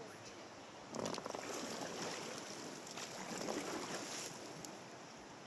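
Paddles splash and dip into calm water.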